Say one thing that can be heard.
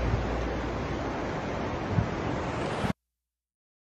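Waves crash and roar loudly.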